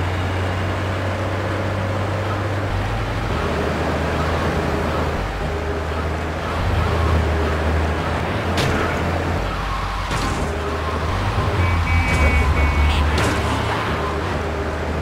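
A fire truck's engine drones as it drives along a road in a video game.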